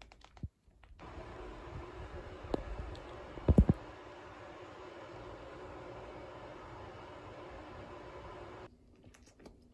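Food sizzles steadily in a hot frying pan.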